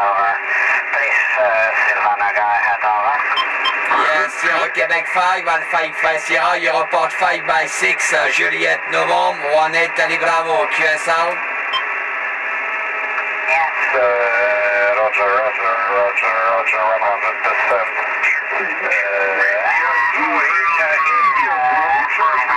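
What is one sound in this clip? A man talks through a radio loudspeaker, warbling and distorted.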